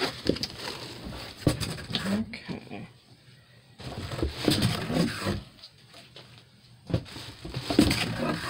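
Cardboard flaps rustle and thump against a box.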